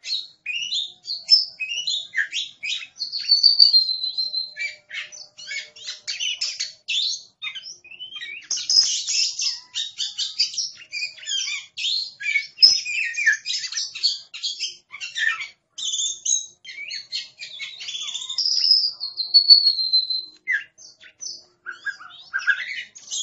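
A songbird sings a loud, varied song of whistles and chirps close by.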